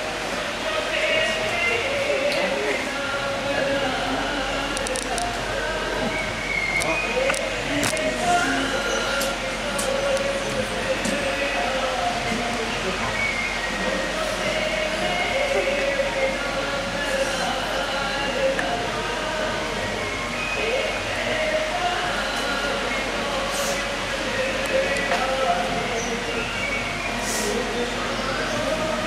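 A group of men and women sing slowly together.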